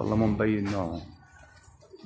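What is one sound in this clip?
A pigeon coos softly nearby.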